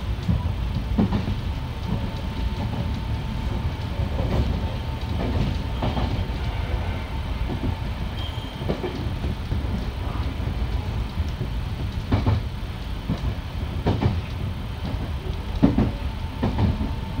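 A train rumbles steadily along the tracks from inside the cab.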